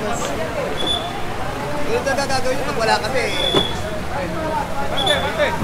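Several men talk at once in a busy crowd outdoors.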